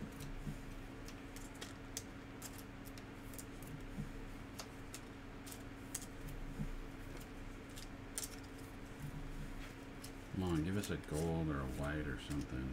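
Plastic card wrappers crinkle and rustle in someone's hands.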